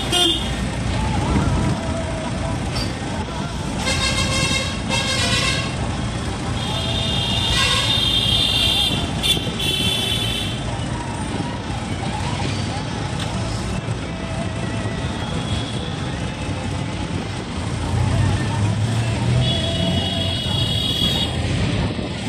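Wind rushes past an open vehicle.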